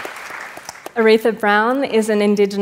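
A woman speaks through a microphone in a large hall.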